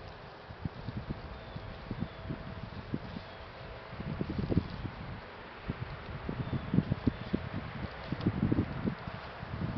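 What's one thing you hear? Wind rumbles across an open outdoor space.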